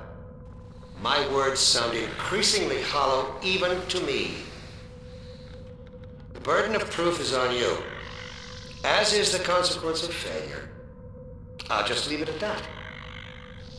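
A young man speaks into a microphone in short, lively bursts.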